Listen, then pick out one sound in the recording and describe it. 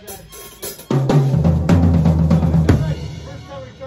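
A band plays a loud final chord on keyboards.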